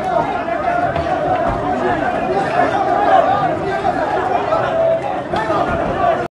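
A crowd of men shouts and yells close by.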